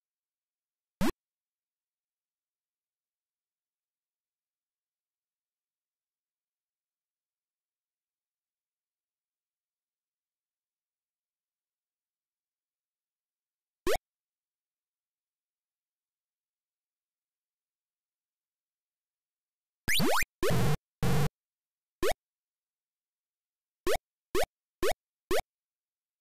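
Short rising electronic beeps chirp now and then from an old computer game.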